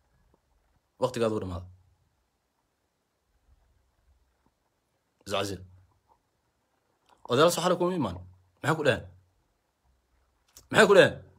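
A young man speaks close to the microphone in short, calm phrases with pauses.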